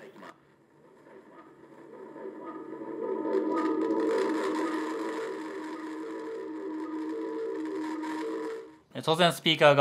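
A loudspeaker plays a steady, humming tone.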